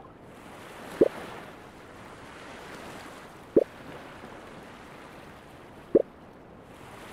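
A soft click sounds each time a menu page turns.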